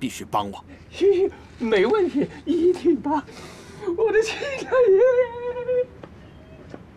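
Another middle-aged man answers eagerly and laughs.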